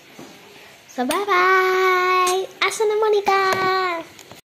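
A young girl sings loudly with long held notes close to the microphone.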